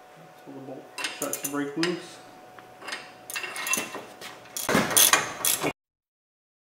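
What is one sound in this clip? A ratchet wrench clicks as a bolt is loosened.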